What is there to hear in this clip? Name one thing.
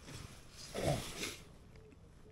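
A man lets out a low, sleepy groan close by.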